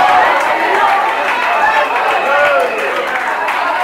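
A crowd of women claps along.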